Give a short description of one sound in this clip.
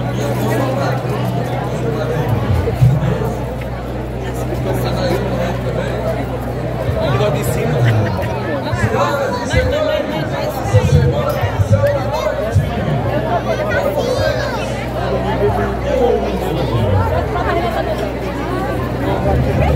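A large outdoor crowd chatters and murmurs all around.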